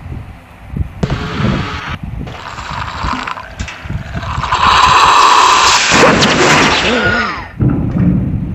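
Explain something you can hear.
A cartoon cat gulps down milk noisily.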